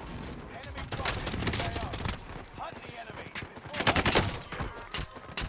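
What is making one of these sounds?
A gun fires a quick series of loud shots.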